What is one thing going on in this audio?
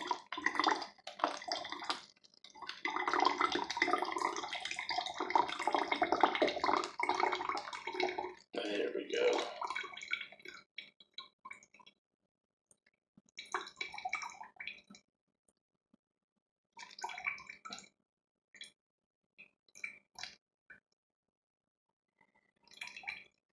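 A thin stream of liquid pours and splashes into a plastic bottle.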